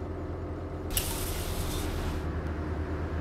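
An air-powered bus door hisses open.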